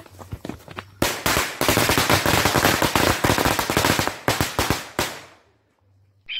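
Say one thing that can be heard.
Fireworks crackle and fizz loudly outdoors.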